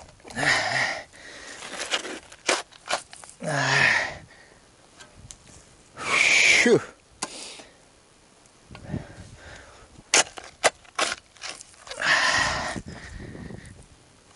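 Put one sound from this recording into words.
A shovel scrapes and digs into dry soil.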